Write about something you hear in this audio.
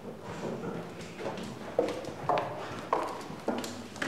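Footsteps knock on a wooden floor close by.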